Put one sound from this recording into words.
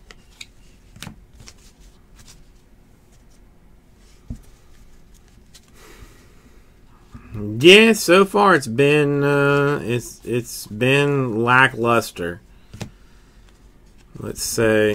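Stiff cards rustle and flick as they are sorted by hand.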